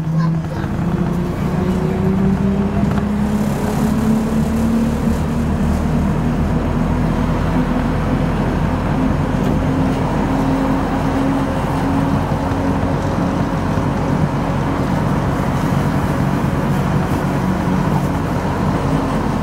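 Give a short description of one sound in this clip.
An engine hums steadily inside a moving vehicle.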